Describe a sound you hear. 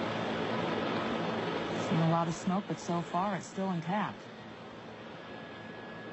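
A jet airliner's engines roar as it rolls down the runway.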